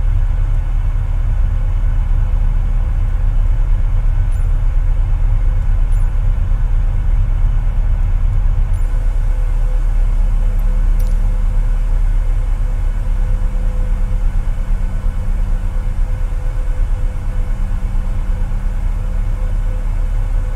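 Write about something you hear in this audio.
Jet engines roar with a steady, low rumble.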